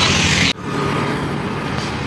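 A motor scooter drives past.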